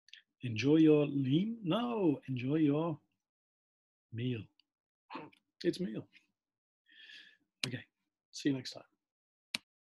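A middle-aged man speaks clearly and slowly into a microphone, drawing out words.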